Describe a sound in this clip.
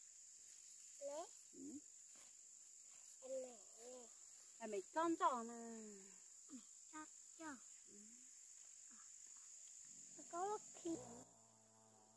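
A young girl talks in high, lively bursts close by.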